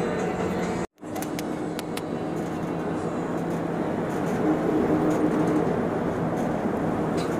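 Tyres roll on a paved road with a steady rumble.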